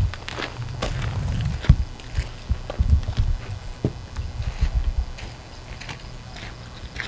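Footsteps crunch on dry ground outdoors.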